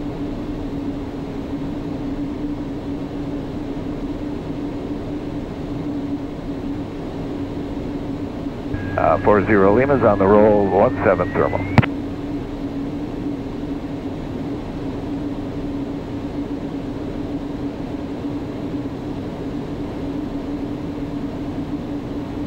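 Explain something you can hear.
An aircraft engine drones steadily inside a small cockpit.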